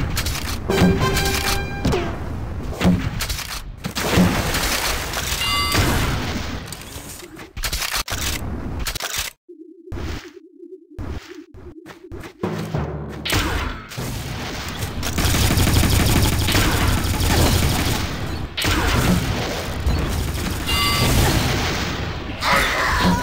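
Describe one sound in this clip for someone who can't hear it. A heavy gun fires blasts in short bursts.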